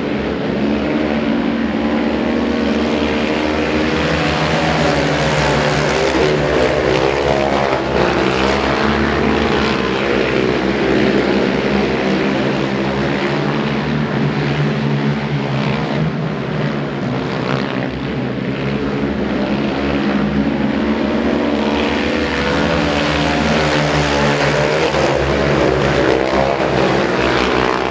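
Racing motorcycle engines roar and whine loudly as the bikes speed around a track.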